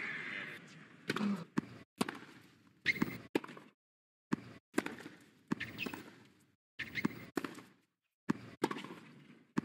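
A tennis ball bounces repeatedly on a hard court.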